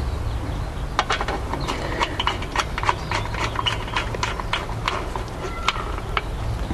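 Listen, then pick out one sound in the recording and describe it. A screwdriver clicks and scrapes as it tightens a metal screw.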